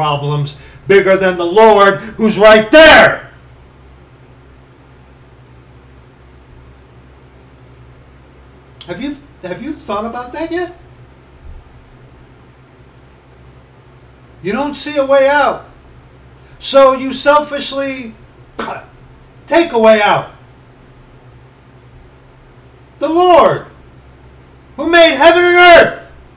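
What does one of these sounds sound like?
A middle-aged man talks with animation close to a microphone, in bursts with pauses.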